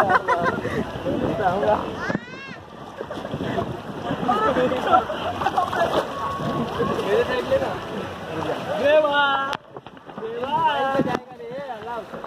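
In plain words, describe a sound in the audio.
Young men talk and laugh with animation close by.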